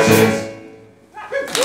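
A large choir of men and women sings a final held chord that rings out in a hall.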